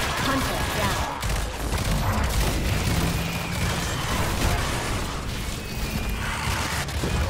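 Electric beams crackle and buzz.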